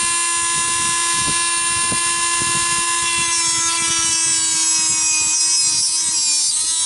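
A rotary tool bit grinds and scrapes against a hard surface.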